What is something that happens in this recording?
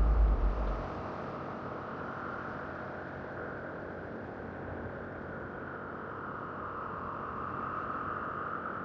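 Wind rushes steadily past while falling through the sky.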